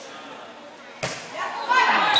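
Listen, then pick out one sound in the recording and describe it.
A volleyball is hit with a sharp smack.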